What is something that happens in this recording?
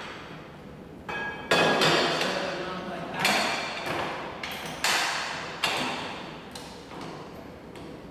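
A metal vise clicks and rattles as it is tightened.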